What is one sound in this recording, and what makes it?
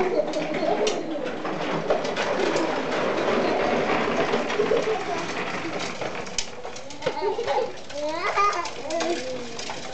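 Plastic tricycle wheels rumble and rattle over a hard floor.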